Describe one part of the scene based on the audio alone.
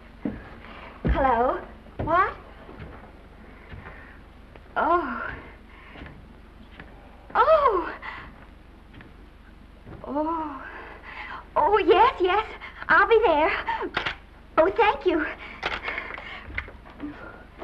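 A woman talks on a telephone with animation, close by.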